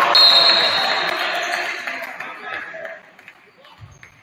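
A crowd cheers and applauds in an echoing gym.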